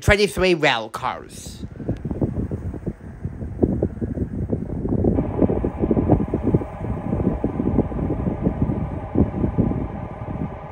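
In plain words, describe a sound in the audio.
A train approaches, its rumble slowly growing louder.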